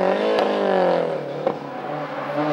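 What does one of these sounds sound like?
A car's exhaust pops sharply.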